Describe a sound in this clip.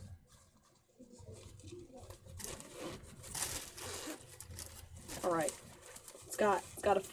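Fabric rustles and crinkles as it is handled.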